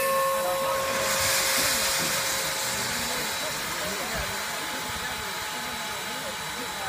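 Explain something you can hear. Steam hisses loudly from a locomotive close by.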